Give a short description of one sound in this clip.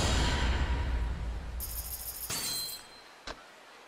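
A game chimes as an ability is unlocked.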